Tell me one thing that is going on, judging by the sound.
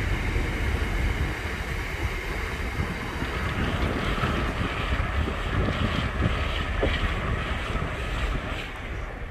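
A freight train rumbles past on the rails and slowly fades into the distance.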